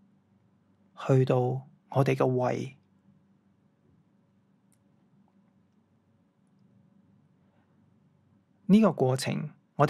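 A man speaks calmly in a quiet, slightly echoing room.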